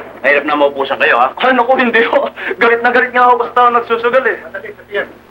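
A woman speaks in a clear, animated voice.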